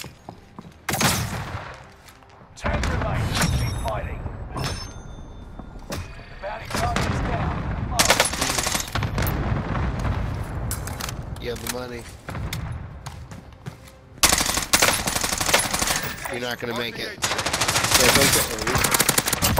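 Sniper rifle shots ring out in a video game.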